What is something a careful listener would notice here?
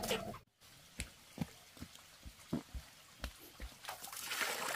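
A metal bucket clunks as it is set down.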